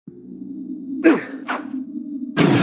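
Swords clang together in a fight.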